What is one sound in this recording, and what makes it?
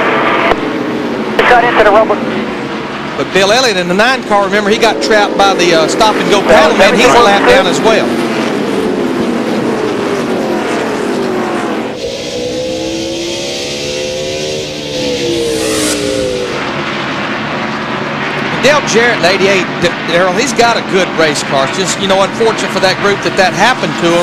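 Race car engines roar past, rising and falling in pitch.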